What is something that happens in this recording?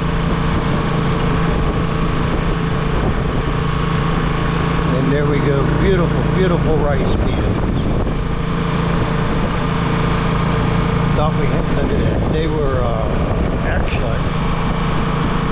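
A vehicle engine hums steadily from inside while driving along a road.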